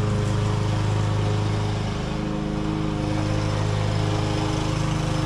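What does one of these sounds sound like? A lawn mower engine drones steadily.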